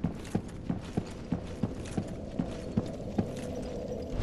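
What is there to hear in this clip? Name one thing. Armoured footsteps clank steadily on a stone floor.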